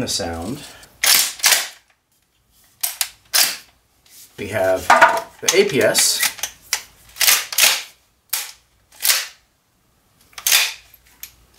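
A toy shotgun's pump action clacks sharply several times.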